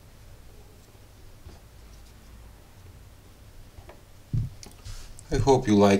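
Small plastic parts clack softly as they are set down on a rubber mat.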